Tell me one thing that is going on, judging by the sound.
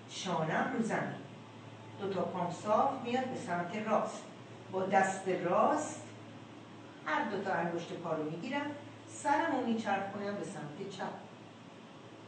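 A woman speaks calmly nearby, pausing between phrases.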